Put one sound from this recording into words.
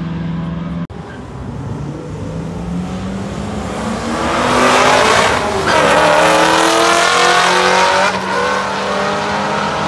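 A second drag car's engine roars as it launches and speeds away.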